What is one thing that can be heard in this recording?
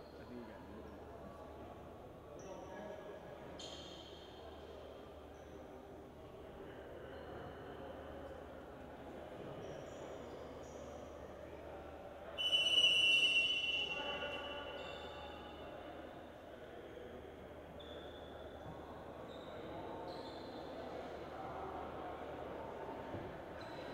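A crowd of people talk in a low murmur.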